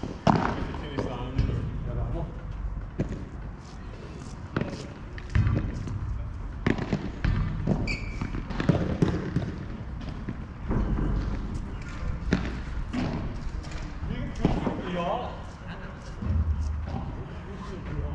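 Padel balls pop sharply off rackets nearby.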